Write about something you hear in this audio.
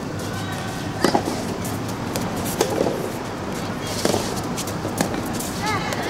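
Rackets strike a ball back and forth outdoors.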